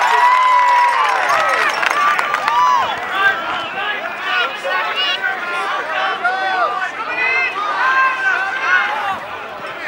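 Spectators cheer and yell from the sidelines.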